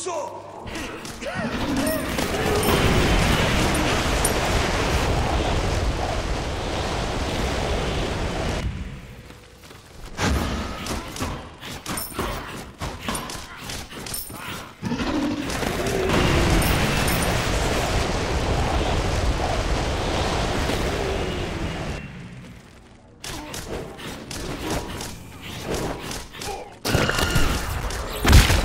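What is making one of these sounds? Weapons clash and magic blasts crackle in a video game fight.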